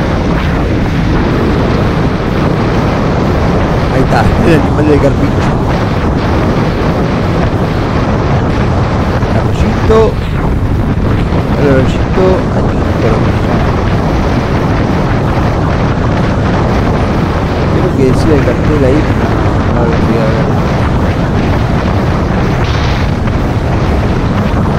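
Wind roars loudly against a microphone on a moving motorcycle.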